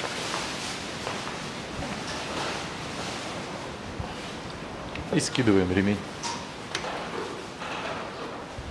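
A wrench clicks against metal engine parts.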